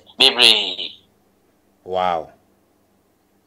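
A man speaks with emphasis close to a microphone.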